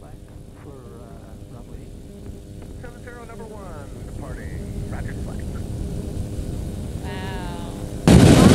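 A small aircraft engine drones steadily with a buzzing propeller.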